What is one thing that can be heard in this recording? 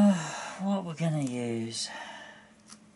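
An older woman speaks briefly and calmly nearby.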